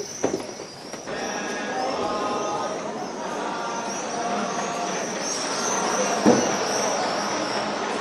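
A crowd of people murmurs and chatters nearby.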